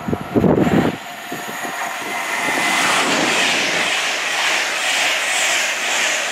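A train rushes past close by with a loud, steady roar.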